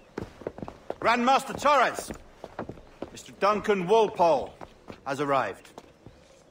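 A man announces an arrival in a clear, formal voice.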